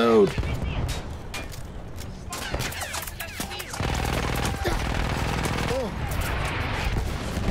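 Gunshots crack and pop in rapid bursts.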